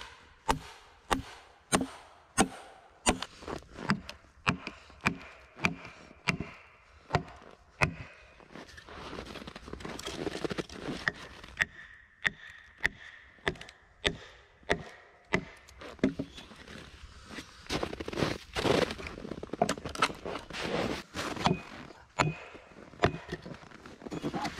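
A hatchet chops into wood with sharp, regular knocks.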